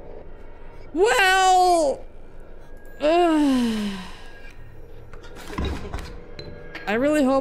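A young man exclaims loudly into a close microphone in drawn-out, sliding cries.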